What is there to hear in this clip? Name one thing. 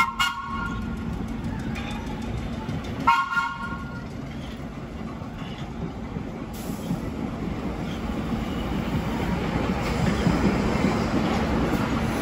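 A vintage subway train rolls past on rails.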